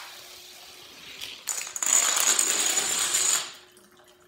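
Dominoes click as they topple one after another.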